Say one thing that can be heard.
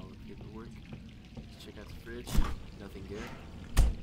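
A refrigerator door is pulled open.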